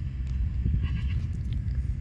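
Fingers scratch and crumble loose soil.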